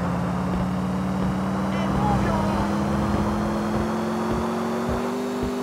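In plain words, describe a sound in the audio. A car engine hums steadily at high revs.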